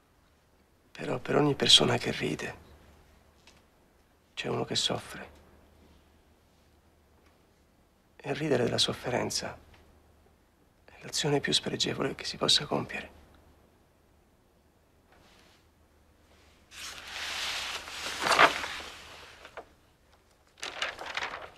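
A man speaks calmly and earnestly in short phrases, close by.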